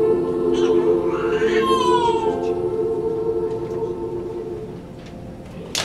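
A piano plays along.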